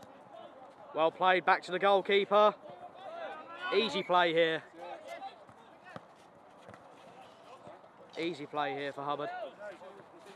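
Men shout to each other outdoors during a football match.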